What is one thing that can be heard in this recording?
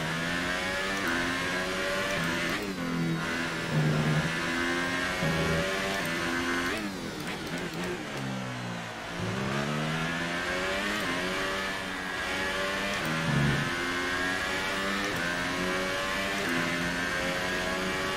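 A racing car engine screams at high revs, its pitch rising through each gear and dropping as the car brakes.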